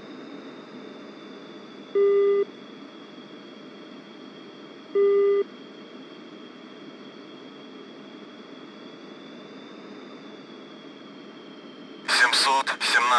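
A jet engine whines steadily.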